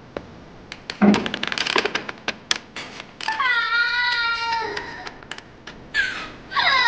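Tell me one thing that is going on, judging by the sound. A young woman cries out in pain, screaming and wailing.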